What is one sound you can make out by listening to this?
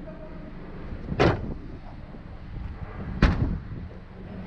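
A car trunk lid thumps shut.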